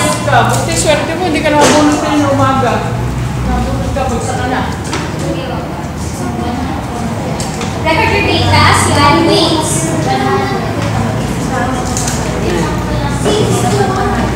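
A young woman speaks to a room, close by.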